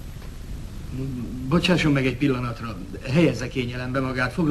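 A man speaks with animation.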